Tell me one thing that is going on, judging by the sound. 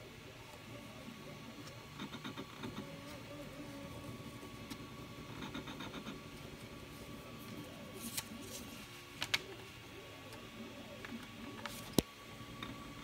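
Fingers tap and rustle against a sheet of paper.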